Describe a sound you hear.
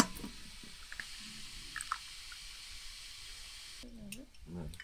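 Tea runs from a tap into a glass.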